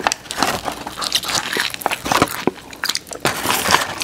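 A man bites into crunchy fried chicken close to a microphone.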